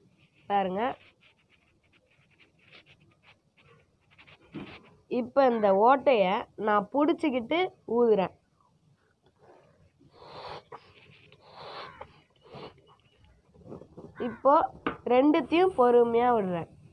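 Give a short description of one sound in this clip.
A boy talks with animation, close by.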